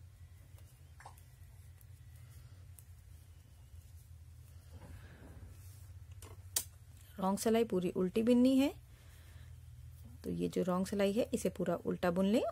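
Knitting needles click softly against each other.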